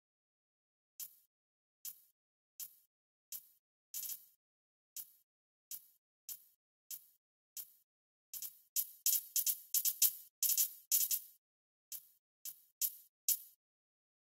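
Short electronic menu clicks tick one after another, quickening in bursts.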